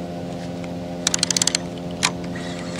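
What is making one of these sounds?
A fishing reel clicks briefly as it winds.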